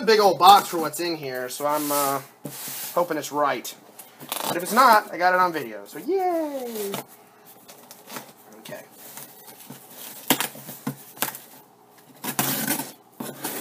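Hands rustle and tap against a cardboard box.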